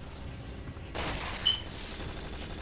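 A gunshot cracks close by.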